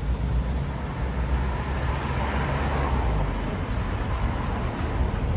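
Car engines idle and pass at a junction.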